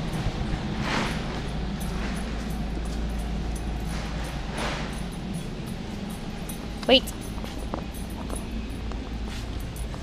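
Sandals slap on a hard floor as a person walks.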